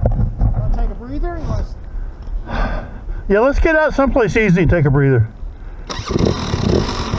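A second dirt bike engine revs and pulls away.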